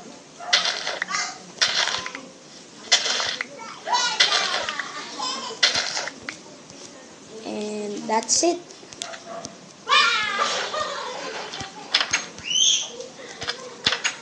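A young boy talks with animation close to a microphone.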